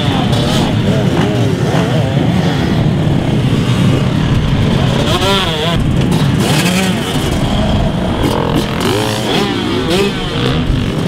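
Many dirt bike engines idle and rumble loudly close by.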